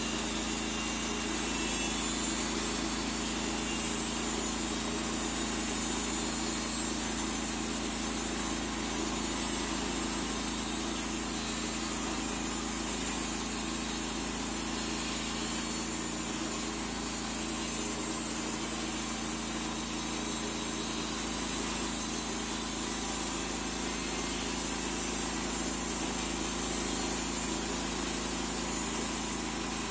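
An engine drones steadily outdoors.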